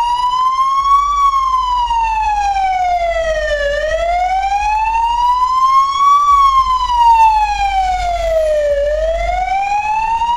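An ambulance siren wails close by, slowly rising and falling in pitch.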